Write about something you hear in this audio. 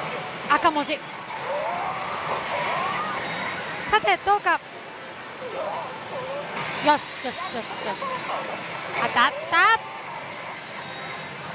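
A slot machine plays bright electronic chimes and jingles.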